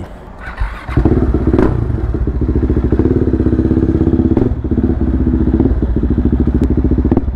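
A motorcycle engine starts and idles with a steady rumble.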